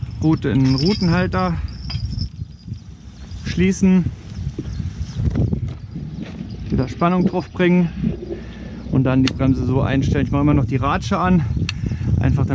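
A fishing reel clicks as its line is wound.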